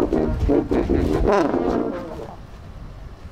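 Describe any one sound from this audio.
A brass band plays a lively tune.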